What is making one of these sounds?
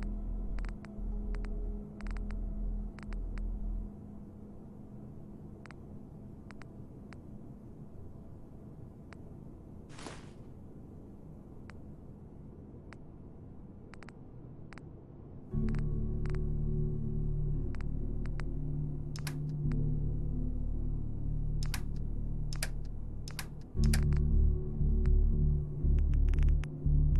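Short soft clicks tick again and again as a game menu is scrolled.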